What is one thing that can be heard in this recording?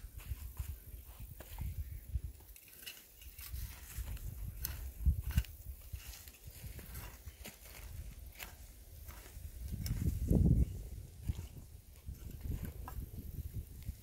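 A hoe chops into dry soil with dull thuds.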